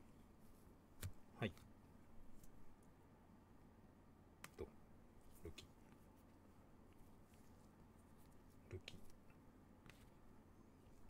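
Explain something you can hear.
Trading cards click and slide against each other in a hand.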